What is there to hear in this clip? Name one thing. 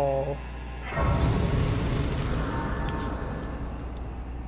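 A soft shimmering magical swell rises and lingers.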